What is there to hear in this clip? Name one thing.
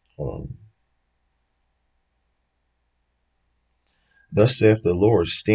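A young man speaks calmly, close to the microphone.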